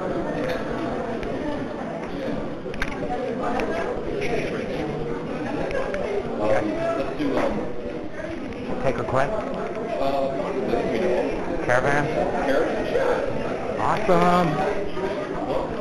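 An electric piano plays jazz chords.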